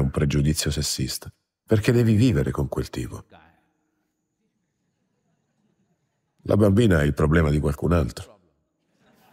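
An elderly man speaks calmly and clearly into a microphone, with pauses.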